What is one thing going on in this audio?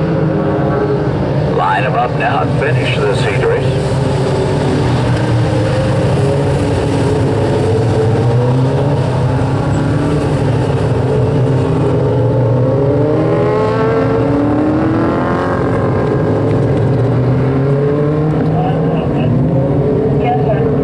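Small race car engines roar and whine as the cars speed around a dirt track outdoors.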